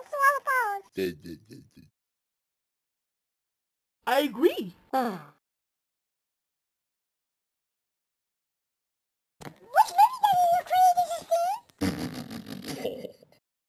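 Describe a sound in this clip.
A cartoon character talks in a low, gruff voice.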